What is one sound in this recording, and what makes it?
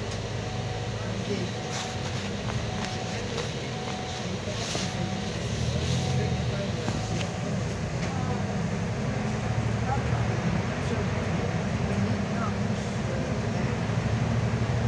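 A bus engine hums low and steady while driving.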